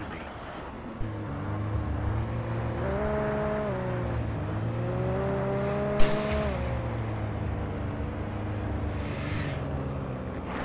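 A truck engine starts and rumbles steadily, revving up and down as it drives.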